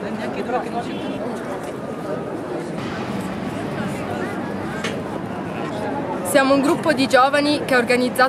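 A crowd murmurs outdoors in the background.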